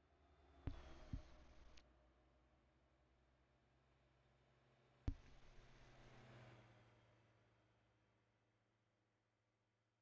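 A truck engine idles with a low hum.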